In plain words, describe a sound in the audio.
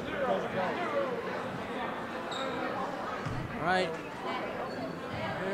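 A crowd of spectators chatters and shouts throughout a large echoing gym.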